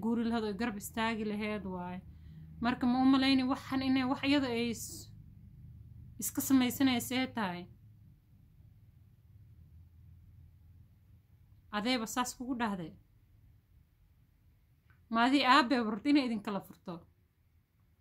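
A young woman speaks calmly close by, in short bursts with pauses.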